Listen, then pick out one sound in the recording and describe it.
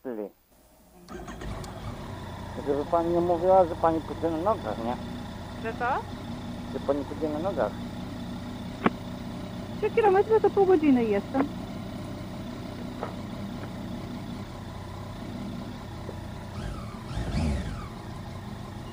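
A motorcycle engine idles with a low, steady rumble nearby.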